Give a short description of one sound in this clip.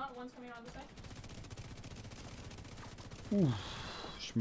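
Gunfire rattles rapidly.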